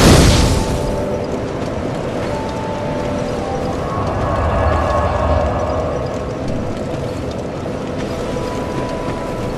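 A fire crackles steadily.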